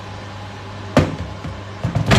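A kettle is set down with a knock.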